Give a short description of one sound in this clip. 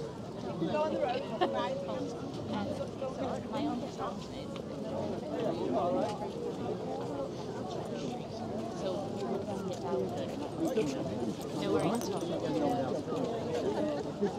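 Footsteps shuffle on pavement as people walk past close by.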